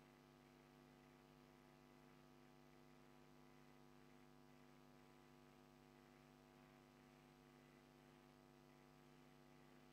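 An organ holds a soft, steady chord.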